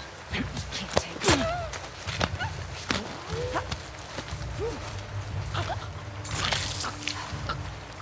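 A short struggle thuds and scuffles in the grass.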